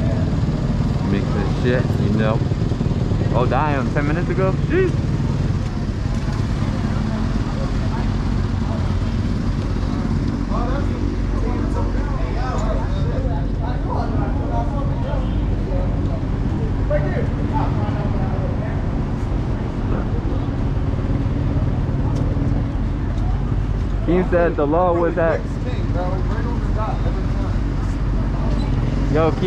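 A dirt bike engine idles steadily close by.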